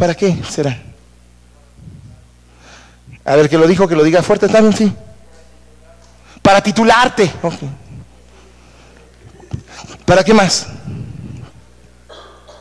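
A middle-aged man speaks with animation in bursts, in a room with a slight echo.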